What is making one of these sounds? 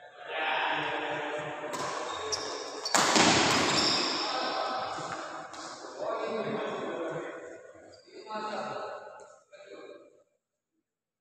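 Badminton rackets strike a shuttlecock.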